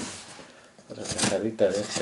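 A knife cuts through cardboard.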